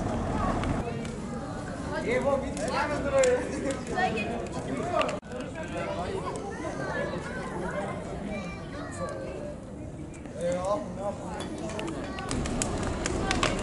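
A bonfire crackles and roars.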